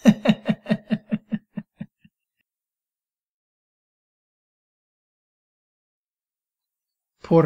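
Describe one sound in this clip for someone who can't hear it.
A young man starts to speak calmly, close by.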